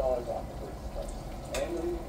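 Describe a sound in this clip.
Metal utensils clink against a pot.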